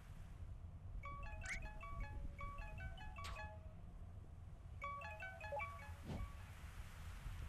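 Quick electronic beeps chime in a rapid run, like text ticking out in a game.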